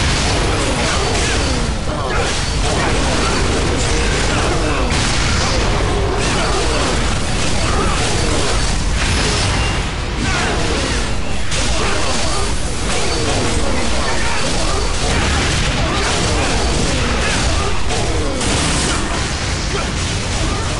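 Sword strikes and magic blasts clash loudly in a fast battle.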